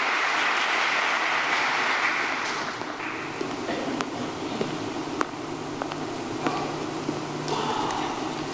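An audience applauds in a large echoing hall, then the clapping thins out.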